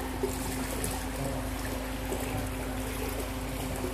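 Water splashes briefly as a fish flicks at the surface.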